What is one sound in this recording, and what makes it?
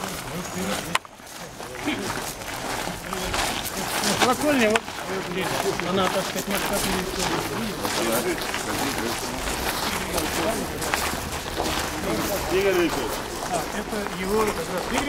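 A crowd of men talk among themselves close by, outdoors.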